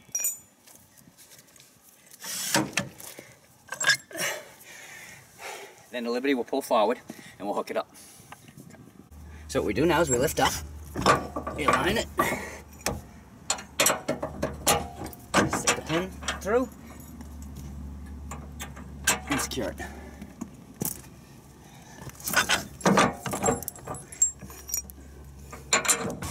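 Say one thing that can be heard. Metal parts clank and click as a tow bar is handled and fitted.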